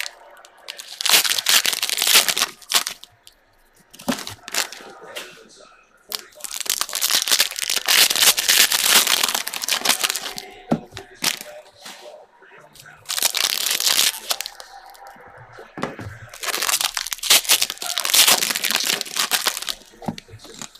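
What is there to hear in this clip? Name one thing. Foil wrappers crinkle and rustle loudly in bursts as hands tear them open.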